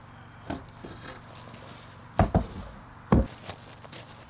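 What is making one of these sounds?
Wooden boards knock and thud as they are set down.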